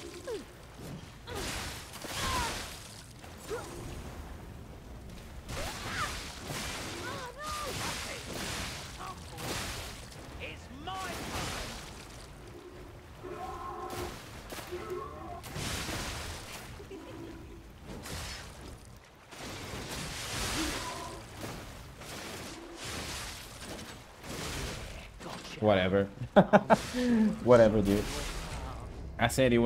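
Swords clash and whoosh in a fight.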